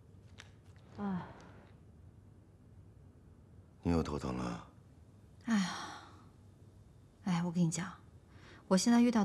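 A young woman speaks quietly nearby.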